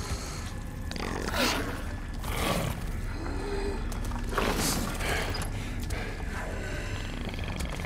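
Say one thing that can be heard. A man grunts and groans with strain, close by.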